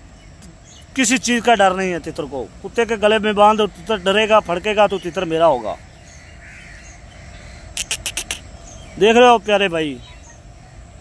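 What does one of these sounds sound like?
A bird gives repeated harsh, wavering calls close by.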